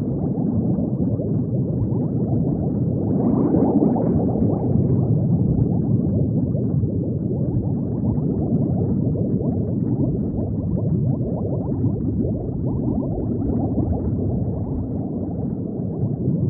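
Bubbles gurgle and bubble steadily underwater.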